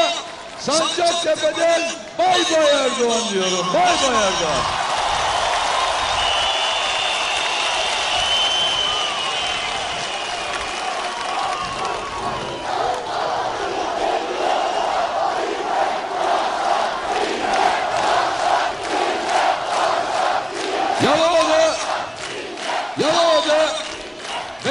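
A man speaks forcefully into a microphone over loudspeakers, echoing outdoors.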